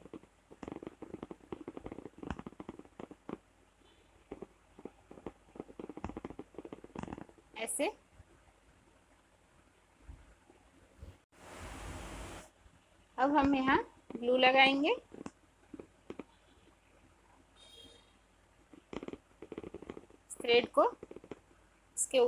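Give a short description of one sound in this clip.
Fingers softly rustle and tug at thin thread close by.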